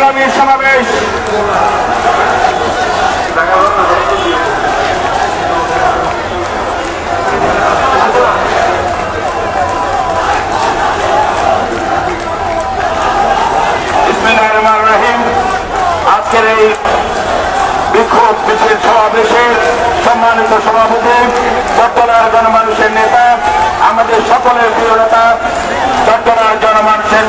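A large crowd of men and women chants and shouts outdoors.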